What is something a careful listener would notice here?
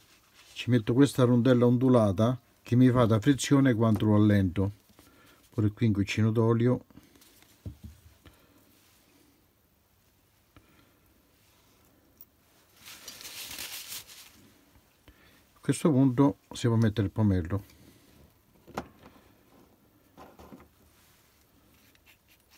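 Small steel parts clink as they are screwed together by hand.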